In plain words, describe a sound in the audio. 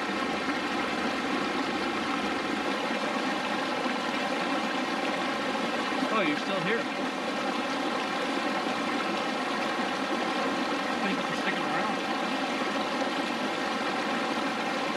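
A small stream trickles and splashes steadily nearby.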